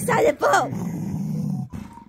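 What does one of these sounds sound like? A dog growls playfully up close.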